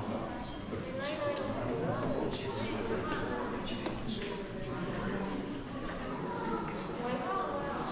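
Visitors talk nearby in a large echoing courtyard.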